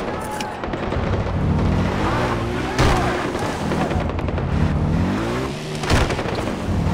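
A quad bike engine revs up and down as the bike drives over rough ground.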